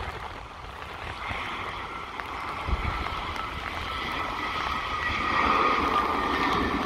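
The jet engines of an Airbus A320 whine as it rolls down the runway after touchdown.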